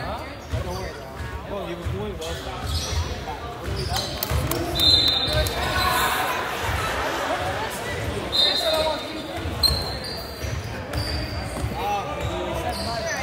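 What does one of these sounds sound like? Spectators chatter in a large echoing hall.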